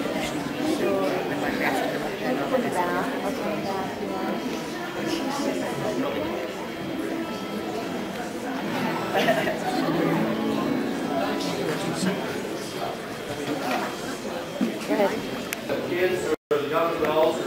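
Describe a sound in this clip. A crowd of people chatter in an echoing hall.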